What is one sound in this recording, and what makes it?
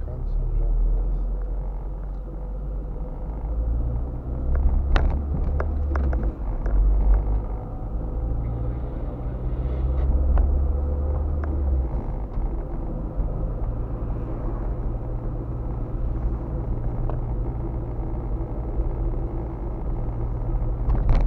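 A car's engine and tyres rumble, heard from inside the car as it drives along a street.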